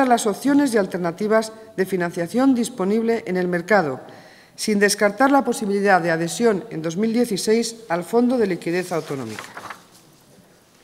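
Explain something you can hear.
A woman speaks calmly into a microphone, reading out.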